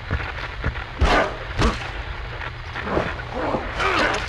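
Punches land with heavy, sharp thuds.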